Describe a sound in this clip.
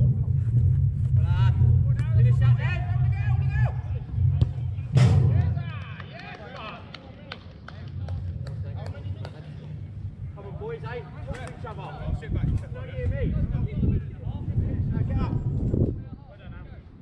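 Young men shout to each other across an outdoor pitch.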